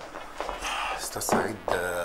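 A man speaks tensely, close by.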